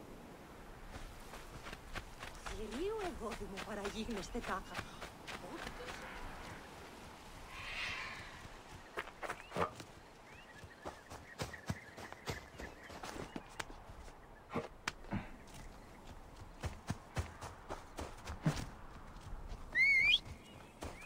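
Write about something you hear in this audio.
Quick footsteps run over sand and rock.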